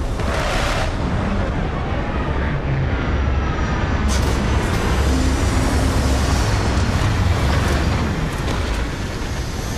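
A spacecraft's engines roar steadily as it descends and lands.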